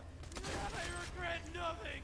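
An explosion bursts close by.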